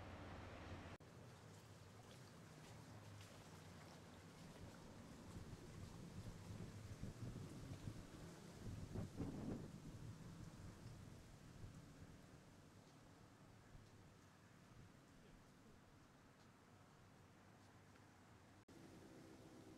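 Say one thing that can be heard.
Wind rustles through willow leaves.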